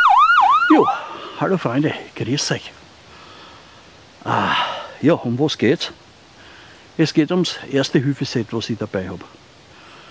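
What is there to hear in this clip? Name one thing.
An elderly man speaks calmly, close by, outdoors.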